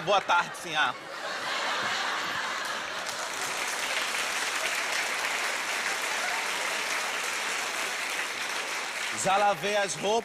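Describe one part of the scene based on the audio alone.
A large audience laughs and applauds in a big hall.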